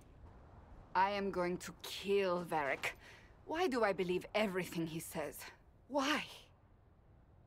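A woman speaks firmly and with emotion, close by.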